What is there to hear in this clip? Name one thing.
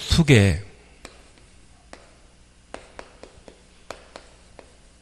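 Chalk taps on a chalkboard.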